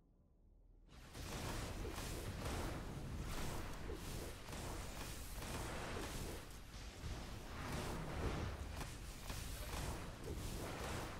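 Video game combat effects crash and blast rapidly.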